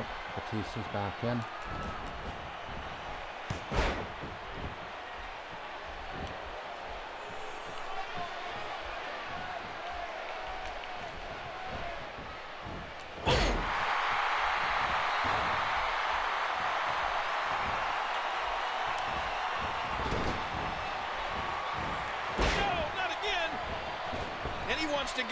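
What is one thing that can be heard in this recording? A large crowd roars and cheers steadily in an echoing arena.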